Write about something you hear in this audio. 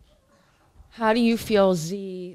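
A teenage boy speaks loudly into a close microphone.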